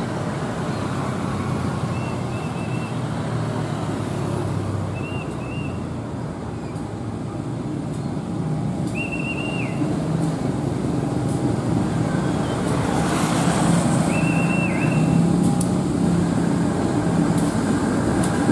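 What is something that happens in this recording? A diesel locomotive engine rumbles steadily and grows louder as it approaches.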